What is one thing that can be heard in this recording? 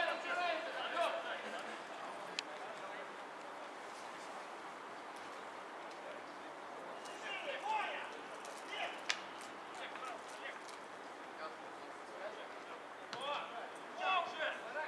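Men shout to each other in the distance outdoors.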